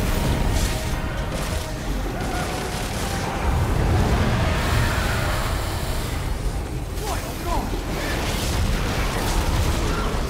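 Blades slash and strike with heavy, rapid impacts.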